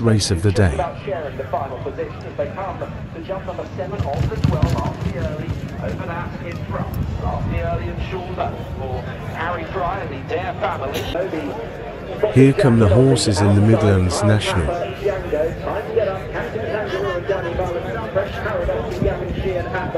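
Horses' hooves thud on turf as they gallop past.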